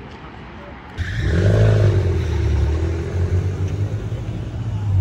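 A car engine rumbles loudly close by.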